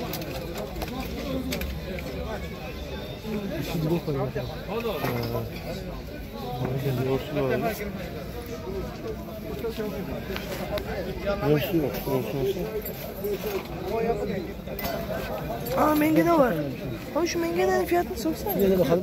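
A crowd murmurs with many voices outdoors.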